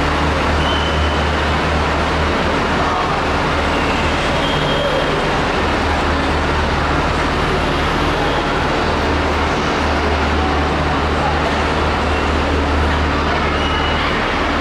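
A train rolls slowly toward the platform.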